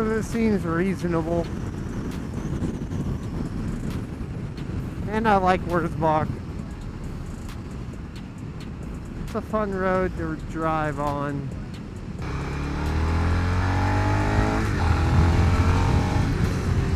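A motorcycle engine runs steadily.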